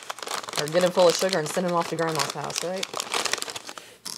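Cellophane wrapping crinkles.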